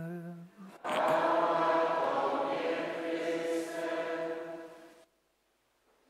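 A man chants in a sustained, sung voice through a microphone.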